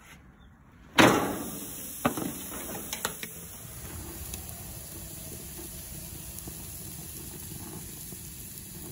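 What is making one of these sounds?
Meat sizzles steadily on a hot grill.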